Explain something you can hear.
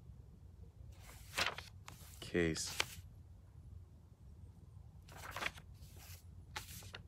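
Paper rustles and crinkles in a man's hands close by.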